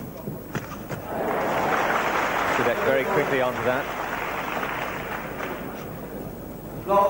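A crowd applauds and cheers in a large hall.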